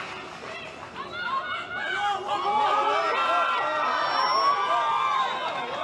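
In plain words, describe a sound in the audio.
A large crowd chants loudly in unison outdoors.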